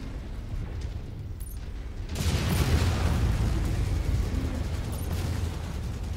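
Energy weapons fire in rapid, crackling bursts.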